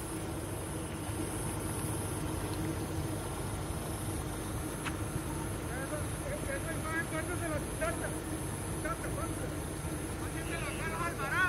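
Fires crackle and roar steadily outdoors.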